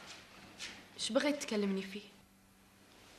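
A young woman speaks quietly and sadly.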